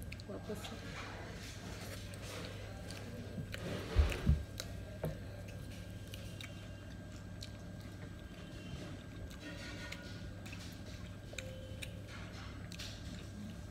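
A young woman chews food with her mouth open, close to the microphone.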